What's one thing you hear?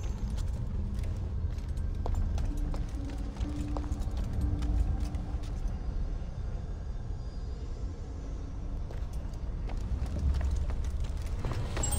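Footsteps patter softly on stone.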